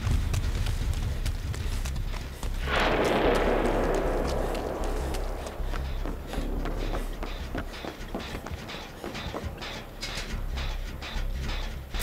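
Footsteps run quickly over creaking wooden boards.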